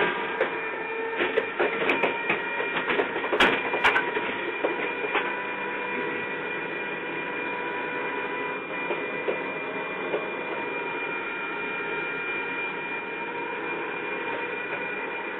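Rain patters and taps on a window.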